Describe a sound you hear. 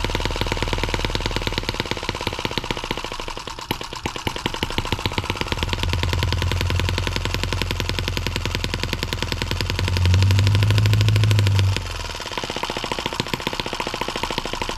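A small engine runs with a fast, steady, rapid ticking.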